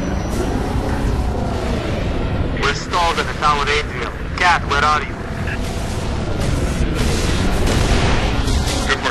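A hovering vehicle's engine hums with a low, steady roar.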